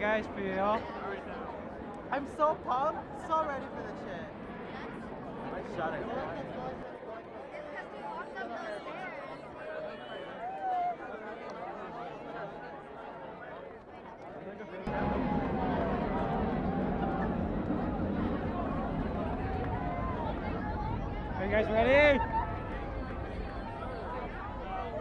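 A large crowd chatters all around, outdoors.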